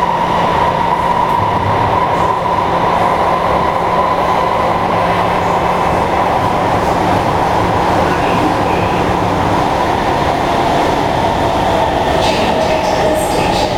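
An electric metro train runs at speed, heard from inside the carriage, with a high motor whine over a low rumble.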